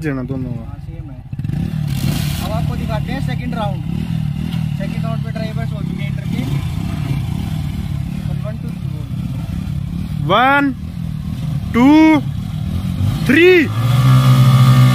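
Motorcycle engines rumble close by.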